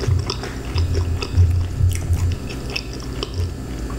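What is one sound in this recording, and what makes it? A pizza crust crackles as a woman lifts a slice.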